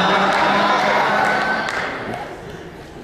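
A young man laughs into a microphone.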